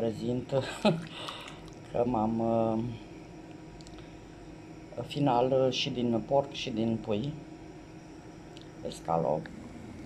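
A spatula stirs a thick mixture in a pot.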